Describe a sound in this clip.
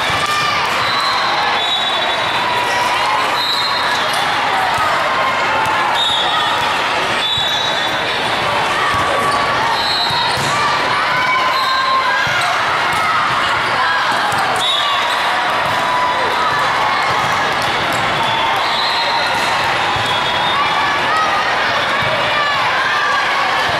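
A crowd of many people chatters and calls out in a large echoing hall.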